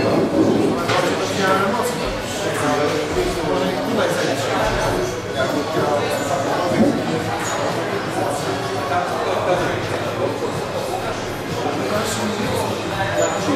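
A squash ball smacks against a wall, echoing in a hard room.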